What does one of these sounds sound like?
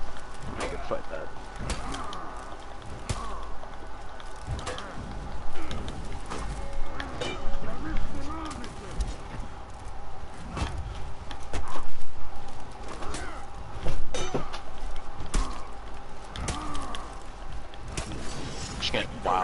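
Men grunt and shout with effort.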